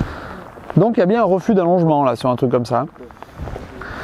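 A man speaks calmly, close by, outdoors.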